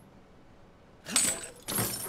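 Bolt cutters snap through a metal chain.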